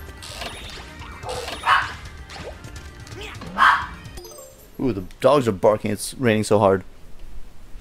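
Cartoonish game sound effects chime and whoosh loudly.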